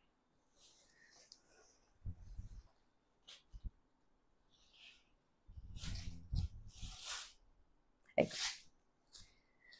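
Silk fabric rustles as it is unfolded and shaken out.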